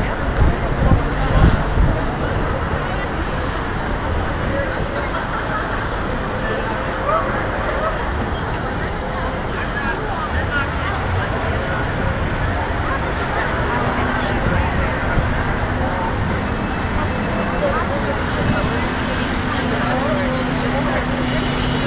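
Traffic rumbles past steadily.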